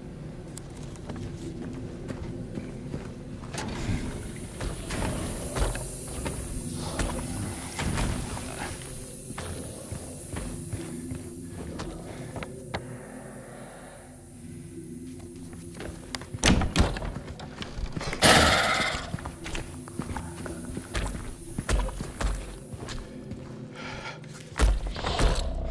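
Footsteps thud on a hard floor.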